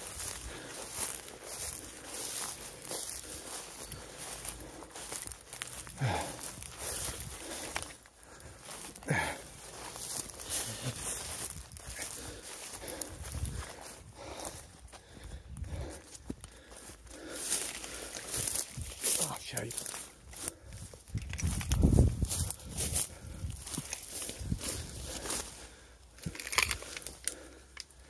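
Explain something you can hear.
Footsteps swish through long grass and brush against leaves.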